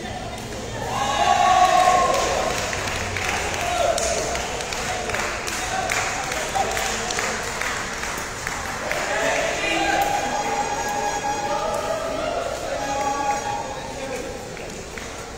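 Young men shout and cheer loudly in an echoing hall.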